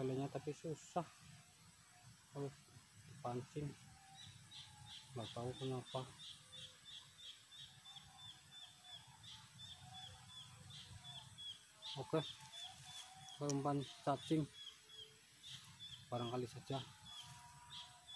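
A middle-aged man speaks calmly and close by, in short bursts.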